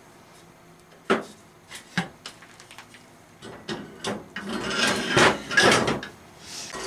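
Steel parts clink together.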